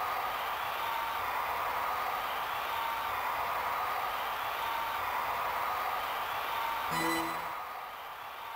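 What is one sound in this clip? Upbeat electronic game music plays.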